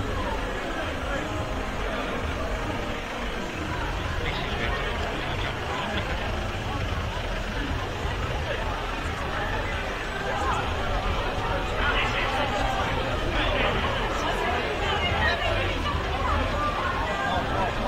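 A crowd of young people chatters and shouts outdoors nearby.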